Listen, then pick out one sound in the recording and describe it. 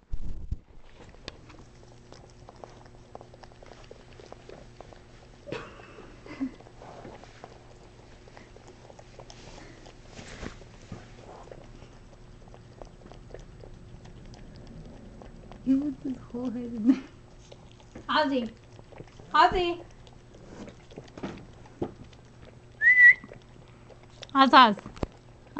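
A small dog licks and laps noisily inside a paper cup.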